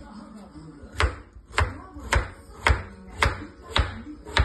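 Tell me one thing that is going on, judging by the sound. A knife chops through a potato onto a wooden board in sharp, regular knocks.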